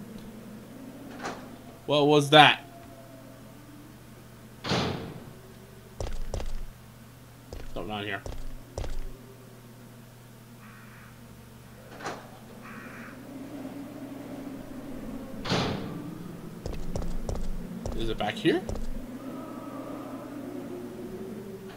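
A heavy door creaks slowly open.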